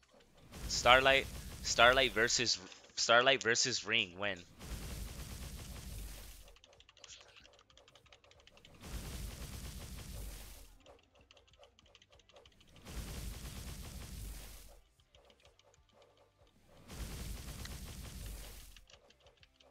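Magical attacks whoosh and crackle in bursts.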